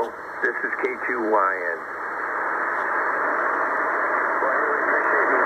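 A radio loudspeaker hisses with steady, rushing static.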